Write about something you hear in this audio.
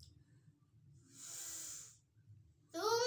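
A girl takes a breath close by.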